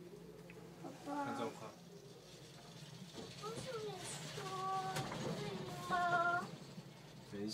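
A young girl speaks and calls out in a high voice nearby.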